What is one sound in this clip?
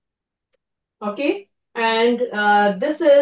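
A woman speaks clearly through an online call.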